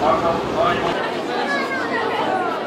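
A crowd of children chatters outdoors nearby.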